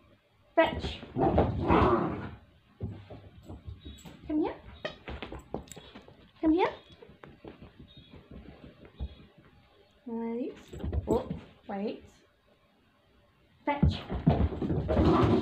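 A puppy's paws patter and scrabble on carpet.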